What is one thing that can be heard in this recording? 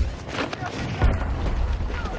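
An explosion booms in the distance.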